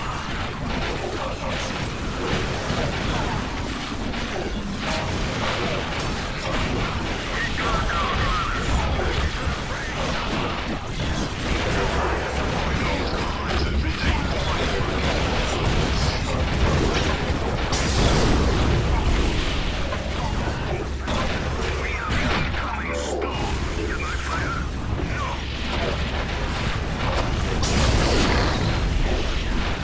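Rapid gunfire crackles in a battle.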